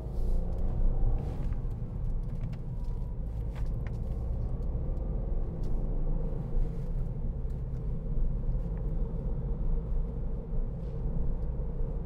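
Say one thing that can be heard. Tyres rumble on the road.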